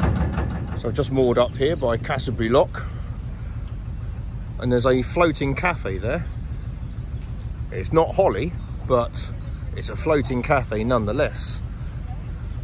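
A man speaks calmly close by.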